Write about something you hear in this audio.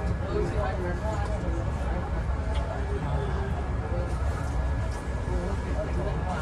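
A bus engine rumbles low and steady from inside the cabin.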